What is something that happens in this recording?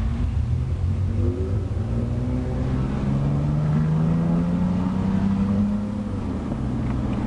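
A car engine revs up, its pitch climbing steadily, then drops back.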